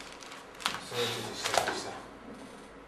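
A newspaper rustles.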